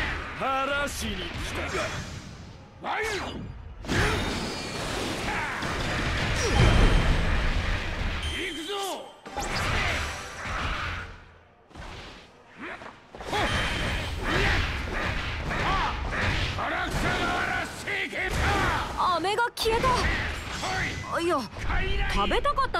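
Heavy blows land again and again in quick bursts.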